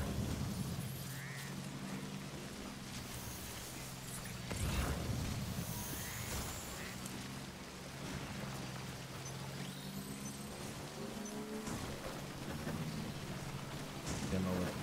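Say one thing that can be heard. A motorbike engine hums steadily as it climbs over rough ground.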